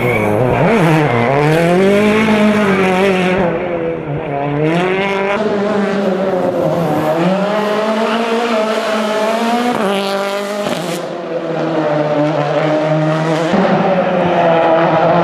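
A rally car engine revs hard and roars past, rising and falling in pitch.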